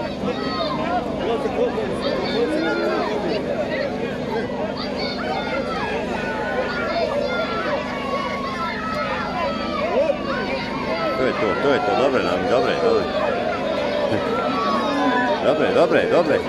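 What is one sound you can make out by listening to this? A large crowd chatters and shouts outdoors at a distance.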